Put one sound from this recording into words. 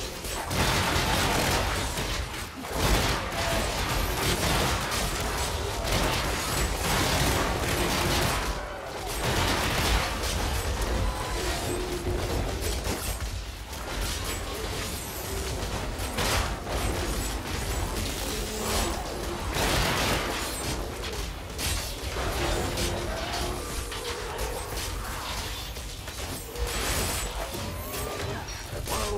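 Music plays underneath.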